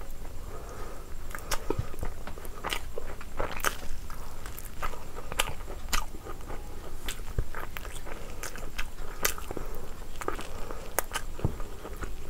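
Fingers squelch and tear through saucy meat and rice.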